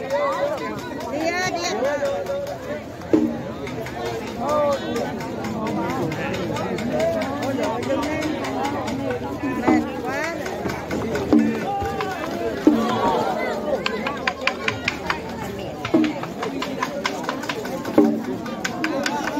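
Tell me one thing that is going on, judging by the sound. A crowd of men and women chatters and calls out loudly outdoors.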